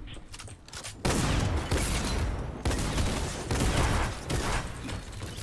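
Walls clatter rapidly into place.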